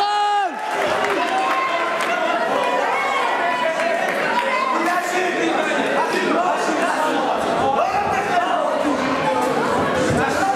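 A crowd of young men shouts and cheers loudly in an echoing hall.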